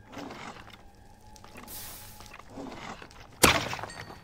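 A fire crackles and pops close by.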